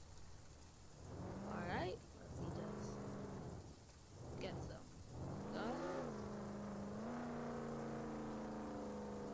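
A car engine revs up and down, then hums steadily.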